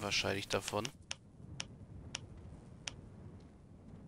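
Short, sharp clicks sound as game items are moved around.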